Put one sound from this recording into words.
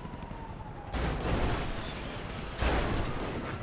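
A car lands hard with a heavy thump.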